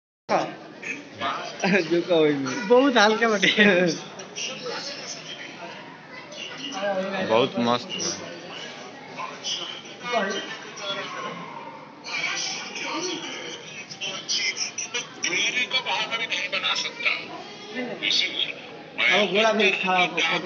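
A crowd chatters nearby in a large echoing hall.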